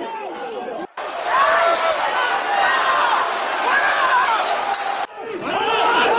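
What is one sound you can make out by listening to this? A crowd shouts and clamours outdoors.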